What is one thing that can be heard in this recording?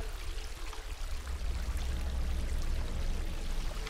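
A small animal splashes through shallow water.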